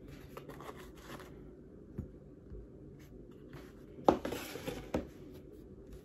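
Metal tools clink as they are set down on a hard board.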